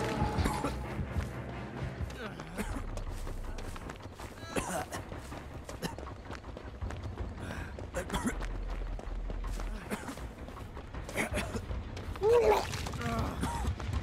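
Footsteps rustle quickly through tall grass.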